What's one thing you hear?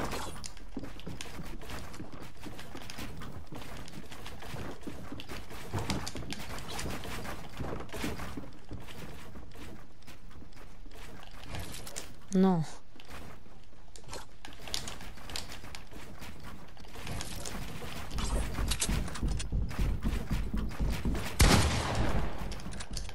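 Wooden walls and ramps clatter quickly into place as a game character builds.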